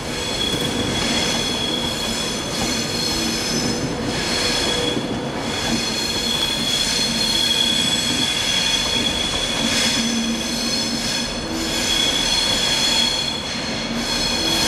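A train's diesel engines hum loudly and steadily as the train rolls past.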